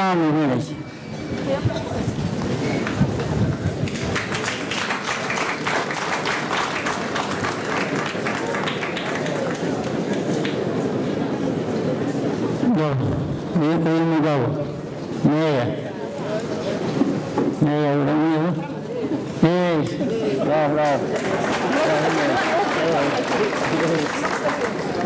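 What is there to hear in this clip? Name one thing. A crowd claps and cheers in the open air.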